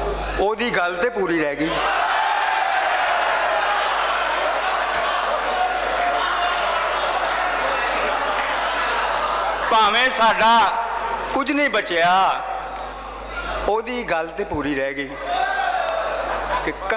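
An elderly man recites loudly and with feeling through a microphone and loudspeakers, in a large echoing space.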